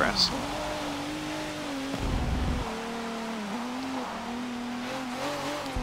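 A race car engine drones steadily, its pitch shifting as the car changes gear.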